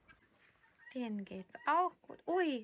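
Small kittens mew in high, thin voices.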